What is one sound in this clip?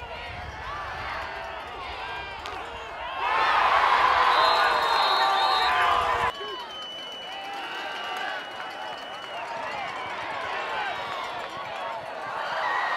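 A large crowd cheers and shouts outdoors.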